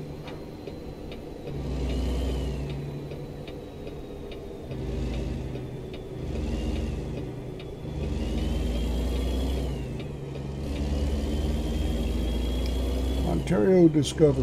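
A truck engine rumbles, revving up and easing off again and again.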